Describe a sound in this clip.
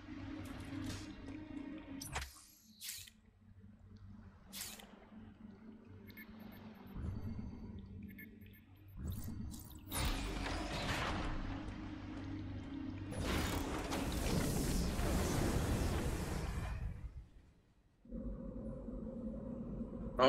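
Electronic game sound effects and music play.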